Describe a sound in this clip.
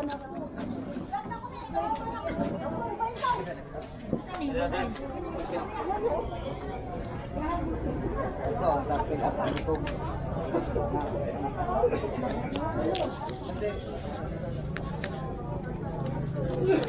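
A crowd of people chatter outdoors in the background.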